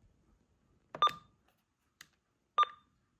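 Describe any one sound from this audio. A radio gives short beeps as its buttons are pressed.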